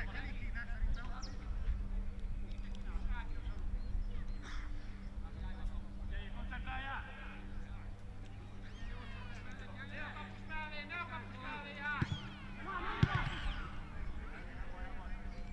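Men shout across an open pitch outdoors.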